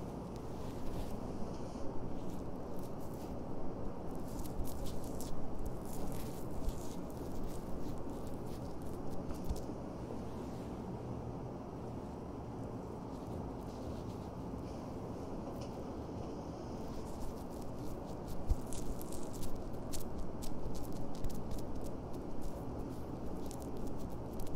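Fingers pat and press paper pads onto skin with soft crinkling rustles close by.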